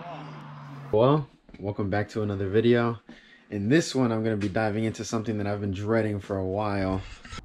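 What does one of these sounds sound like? A young man talks calmly, close up.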